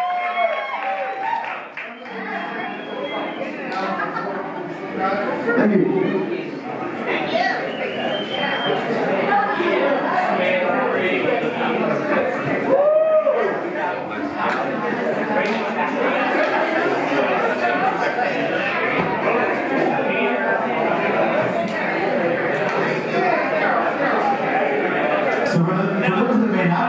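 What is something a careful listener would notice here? A band plays music through loudspeakers.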